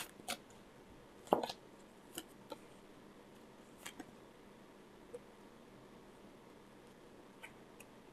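Playing cards rustle softly as they are shuffled by hand.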